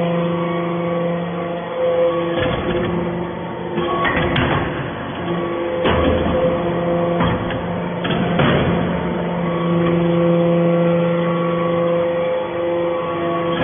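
A hydraulic press hums steadily with a droning machine tone.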